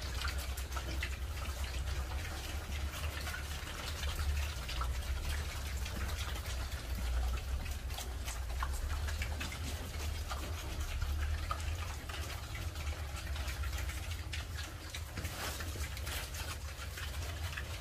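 Pigs munch and crunch on fresh greens.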